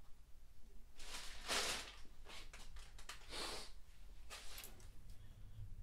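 Stiff leather crinkles and rustles as it is handled.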